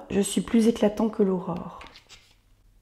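A woman reads aloud calmly, close to a microphone.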